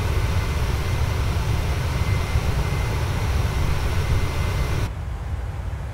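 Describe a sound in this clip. Jet engines roar loudly outside an airliner.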